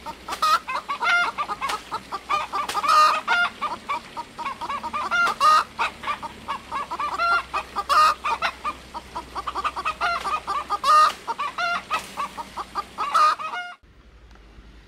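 Bamboo leaves rustle and shake.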